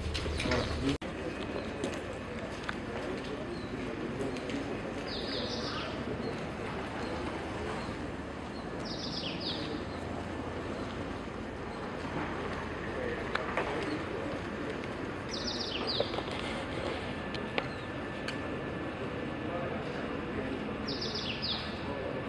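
Shoes tap on pavement outdoors.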